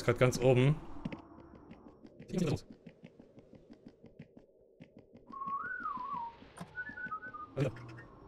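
Footsteps tap steadily on hard stairs.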